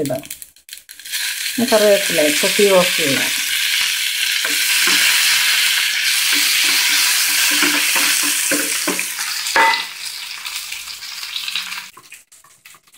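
Food sizzles and crackles loudly in hot oil in a pan.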